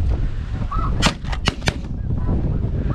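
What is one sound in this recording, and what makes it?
A shotgun fires several quick shots.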